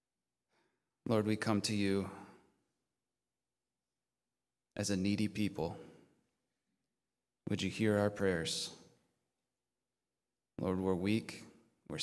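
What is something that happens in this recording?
A man speaks slowly and calmly into a microphone, with pauses between phrases.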